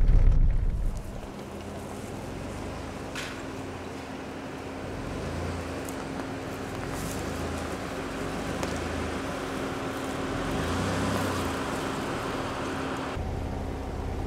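An engine hums steadily as a vehicle rolls slowly past.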